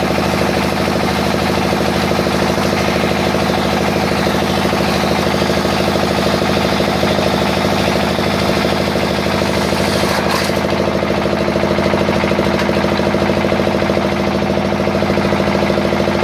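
An electric motor hums and whirs steadily close by.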